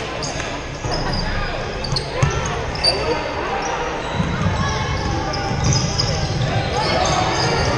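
Sneakers squeak sharply on the wooden court.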